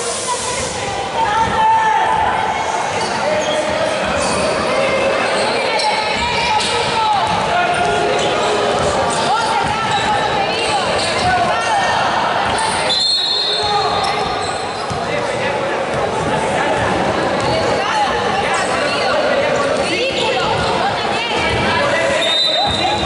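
Many voices chatter and echo in a large indoor hall.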